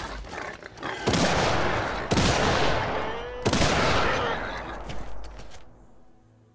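A gun fires several shots.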